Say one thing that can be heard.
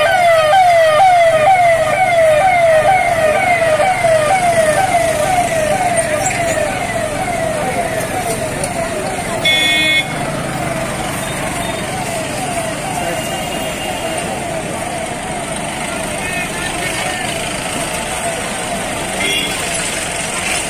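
Vehicle engines rumble as they drive past.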